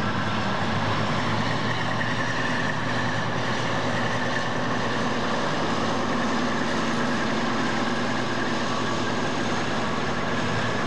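A diesel locomotive engine rumbles loudly close by as it rolls past.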